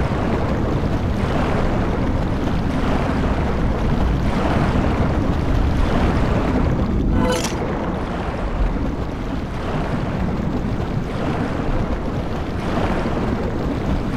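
Muffled water rushes and rumbles steadily underwater.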